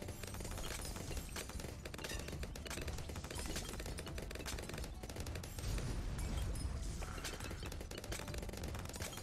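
Small game explosions boom in quick succession.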